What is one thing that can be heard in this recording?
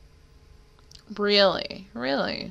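A young woman speaks cheerfully close to a microphone.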